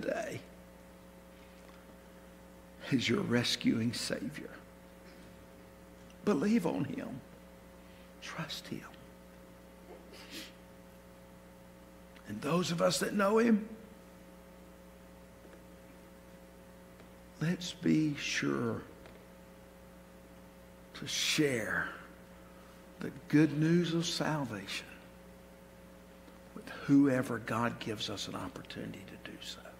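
A middle-aged man speaks slowly and with feeling through a microphone, with long pauses, in a large echoing hall.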